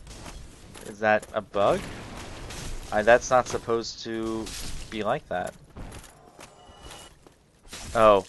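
Metal weapons clash and strike in a fight.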